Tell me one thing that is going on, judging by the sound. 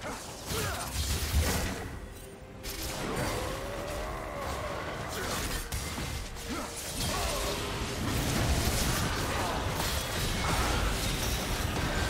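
Magic blasts and clashing blows ring out in a fast fight.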